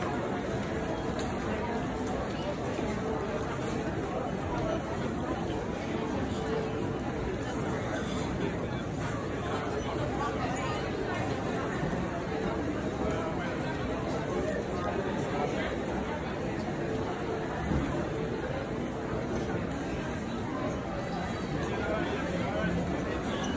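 A crowd murmurs and chatters in a large echoing hall.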